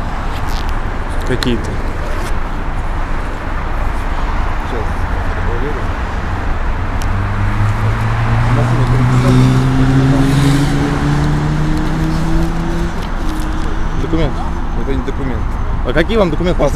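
A man speaks close by in short phrases.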